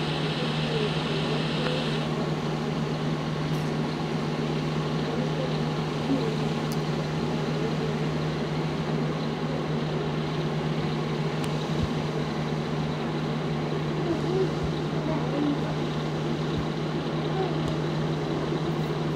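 A diesel semi-truck engine drones while cruising on a highway.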